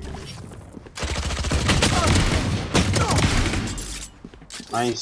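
Rapid gunfire rattles in a video game.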